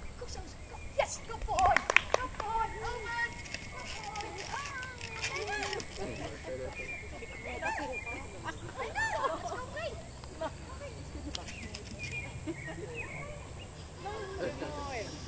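A woman calls out with animation to a dog from a short distance outdoors.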